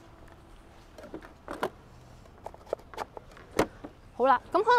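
Plastic tool cases click and knock as they are handled.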